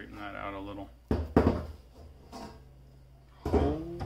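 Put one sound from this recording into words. A metal panel knocks down onto a wooden table.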